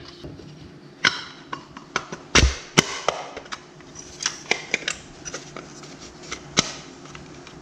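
A plastic mould clicks and taps as it is handled.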